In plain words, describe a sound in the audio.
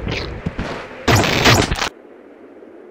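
A laser gun fires with sharp zaps.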